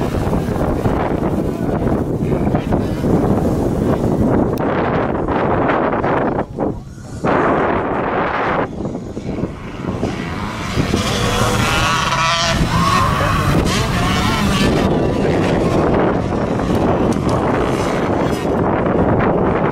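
Dirt bike engines rev and whine loudly as riders race by.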